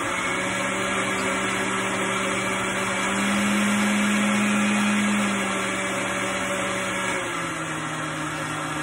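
Food sizzles in hot pans.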